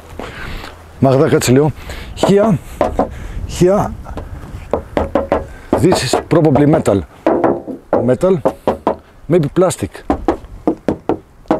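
A man speaks calmly close to a microphone.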